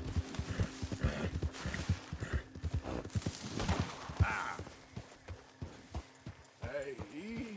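Horse hooves clop steadily on soft ground.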